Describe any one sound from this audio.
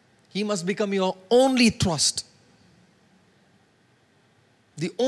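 A man preaches with passion through a microphone, in short emphatic bursts.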